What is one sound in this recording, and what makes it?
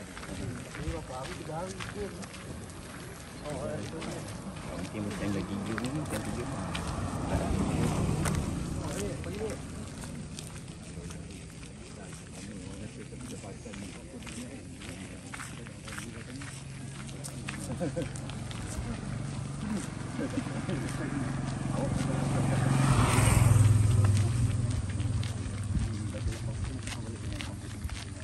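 Footsteps scuff along a paved road.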